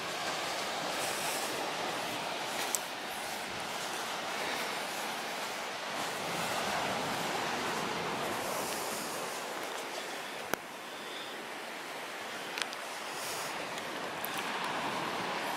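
Wind blows steadily outdoors, buffeting across open ground.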